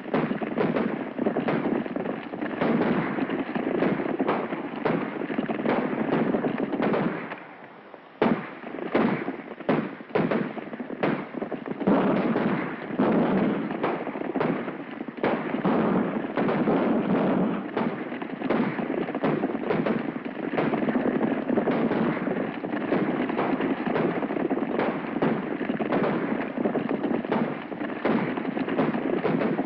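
Horses gallop in a group, hooves drumming on hard ground.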